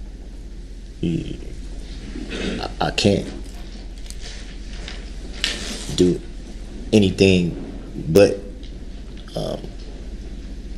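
A man speaks in short, halting bursts with long pauses.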